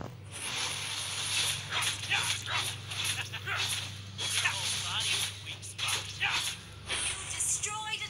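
Game sword strikes and magic blasts clash in quick bursts.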